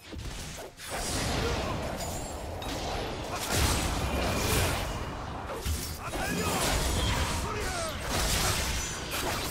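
Swords clash and impacts thud in quick bursts.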